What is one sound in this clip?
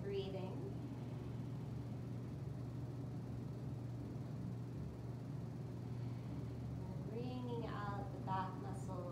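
A woman speaks calmly and softly.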